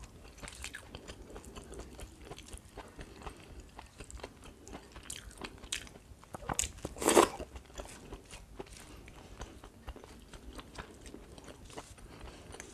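Fingers squish and mix soft rice and food close up.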